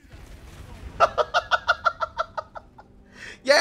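A young man laughs heartily close to a microphone.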